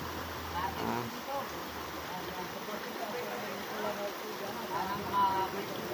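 Water splashes as a man wades through the stream.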